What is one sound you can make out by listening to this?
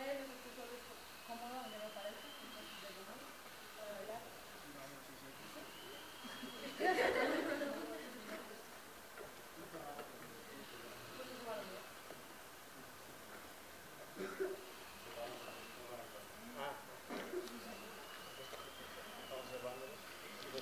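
A group of children chatter and call out outdoors.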